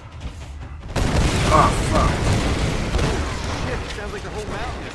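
A loud explosion bursts and roars, then slowly fades.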